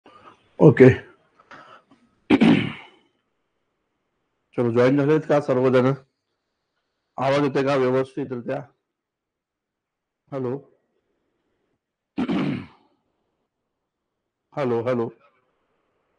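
A man speaks into a clip-on microphone in short bursts, with pauses.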